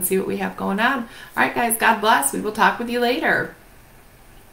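A woman speaks warmly and with animation close to a microphone.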